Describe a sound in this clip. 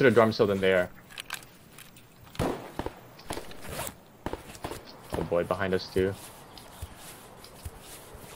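Tall grass rustles as someone crawls through it.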